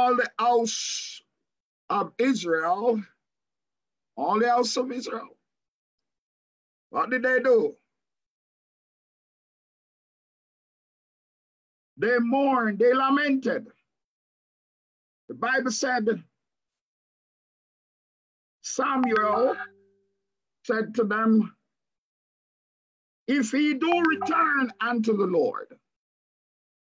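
A man reads aloud in short phrases over an online call, with pauses between them.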